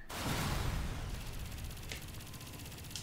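An explosion rumbles and crackles.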